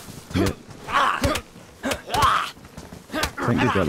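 Fists thump hard against a body.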